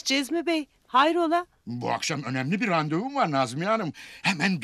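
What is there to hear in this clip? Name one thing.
A middle-aged woman answers with animation, close by.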